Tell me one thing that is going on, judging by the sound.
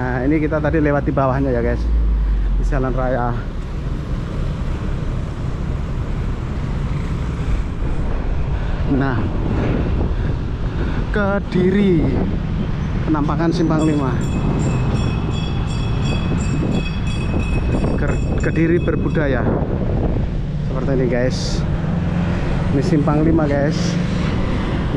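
Traffic rumbles past on a nearby road.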